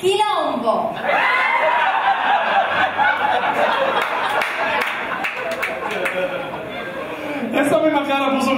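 A woman laughs loudly.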